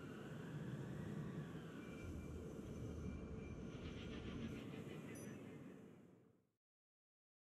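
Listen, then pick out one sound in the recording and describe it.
A spacecraft engine hums with a low, steady rumble, then fades to silence.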